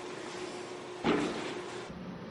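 Feet thud on a padded mat during a tumble.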